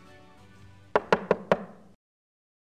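Knuckles knock rapidly on a window pane.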